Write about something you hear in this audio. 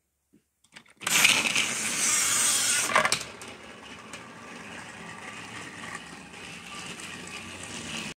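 A toy train's motor whirs.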